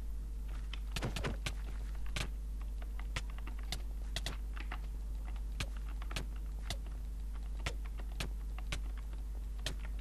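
Quick sharp hits land in a scuffle.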